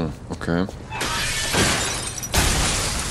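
A heavy weapon whooshes and crashes.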